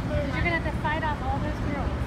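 Young women talk nearby outdoors.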